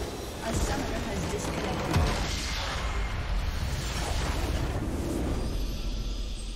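A large structure explodes with a deep rumbling crash.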